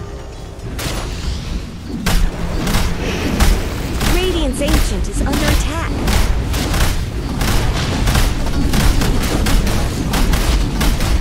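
Spell effects and weapon hits clash and burst rapidly during a fight.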